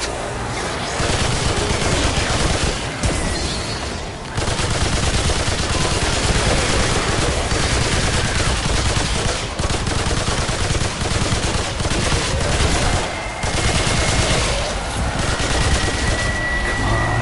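A gun fires in rapid, loud bursts.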